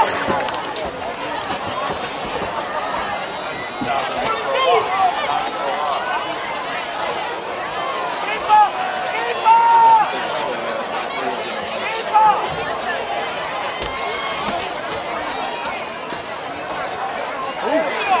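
A crowd of spectators talks and cheers in the open air.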